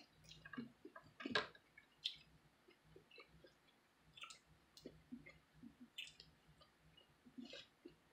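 Fruit peel tears and crackles as it is pulled apart.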